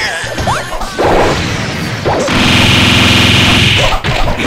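A loud energy beam blasts with a buzzing roar.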